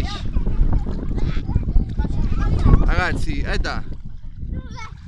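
Water splashes and sloshes close by.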